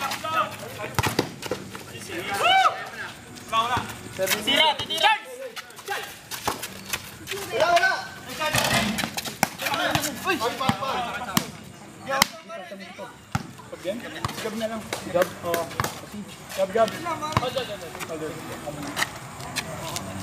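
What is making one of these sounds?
A basketball bounces on an outdoor concrete court.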